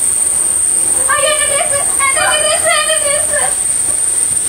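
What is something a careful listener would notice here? A child shouts excitedly nearby.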